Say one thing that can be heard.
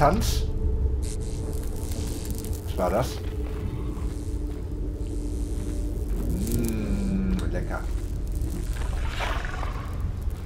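Footsteps scuff slowly over a gritty floor.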